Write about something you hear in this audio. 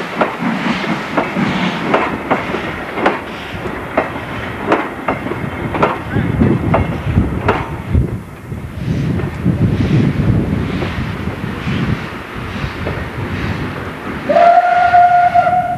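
Train wheels rumble and clack over the rails.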